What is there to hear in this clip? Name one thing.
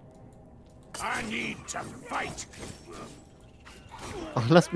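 Weapons strike monsters with sharp hits.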